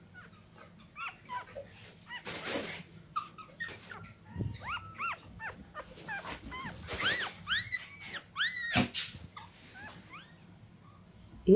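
A newborn puppy squeaks and whimpers in high little cries.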